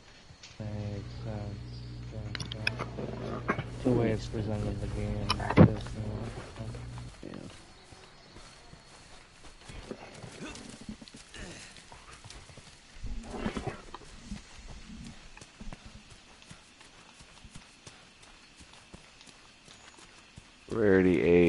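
Footsteps crunch softly on forest ground.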